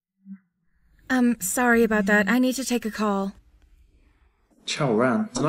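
A young woman talks calmly, close by.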